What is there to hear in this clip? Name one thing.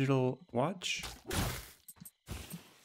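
A magic blast bursts with a rushing whoosh.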